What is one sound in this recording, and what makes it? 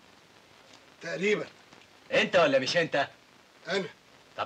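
A second man answers firmly, close by.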